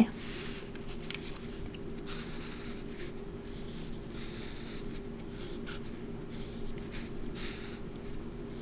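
A marker squeaks across paper in short strokes.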